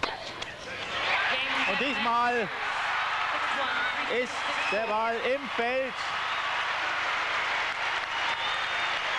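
A large crowd cheers and applauds loudly in a big hall.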